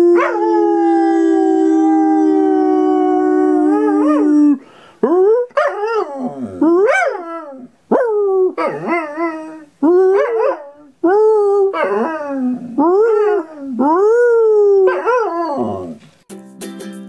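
A dog howls with a long, steady howl, then in a series of rising and falling yowls, close by.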